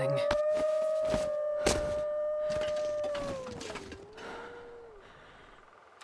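Wind howls through a snowstorm.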